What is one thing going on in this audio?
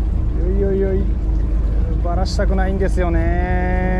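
A fishing reel clicks as its handle is cranked.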